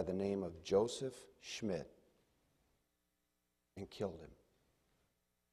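A man speaks through a microphone in a large hall, with pauses between phrases.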